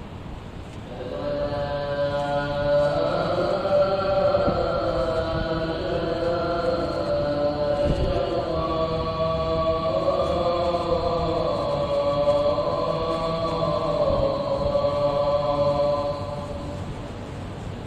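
A man chants through a loudspeaker in a large echoing hall.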